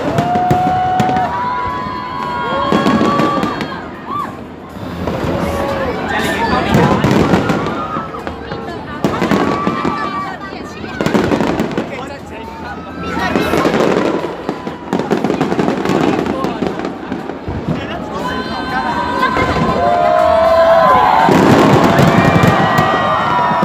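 Fireworks burst and crackle overhead.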